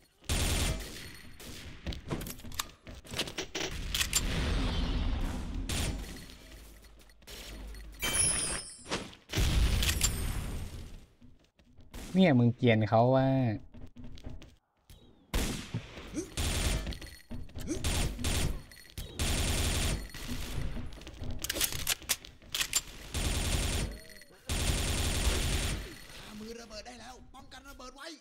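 Rapid gunfire bursts from an automatic rifle.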